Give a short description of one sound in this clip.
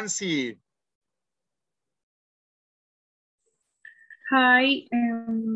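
A woman speaks clearly over an online call.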